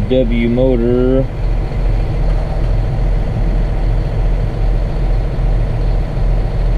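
A tractor engine rumbles steadily, heard from inside the cab.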